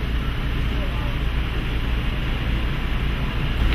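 A semi-truck rolls slowly past.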